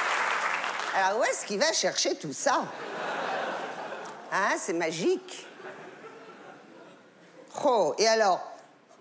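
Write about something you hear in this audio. An elderly woman speaks in a loud, theatrical voice.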